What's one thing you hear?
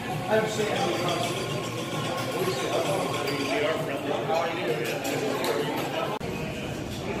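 A crowd of people chatter indoors.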